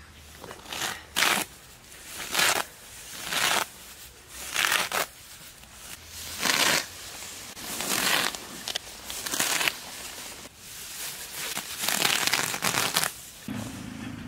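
Grass rustles and tears as a man pulls it up by hand close by.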